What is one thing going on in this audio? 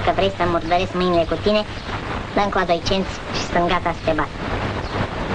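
A young boy speaks loudly and with animation, close by.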